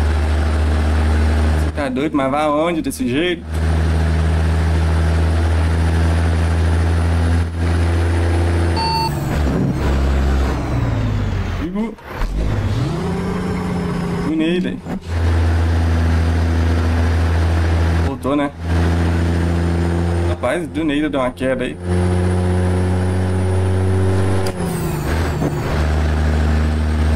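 A truck engine hums steadily, with its pitch shifting as gears change.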